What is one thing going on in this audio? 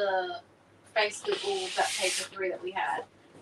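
Sheets of paper rustle and slide as they are handled.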